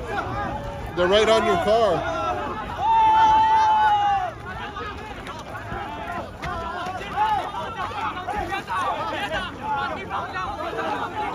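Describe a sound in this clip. A man yells angrily up close.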